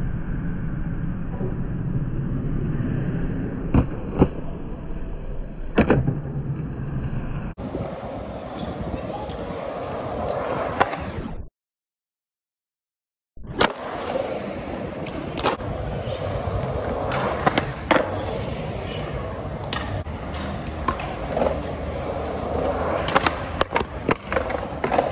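Skateboard wheels roll and rumble over concrete.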